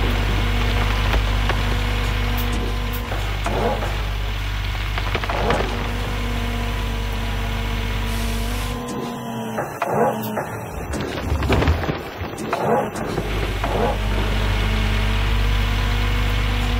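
Dirt and rocks pour from a bucket into a truck bed with a rushing clatter.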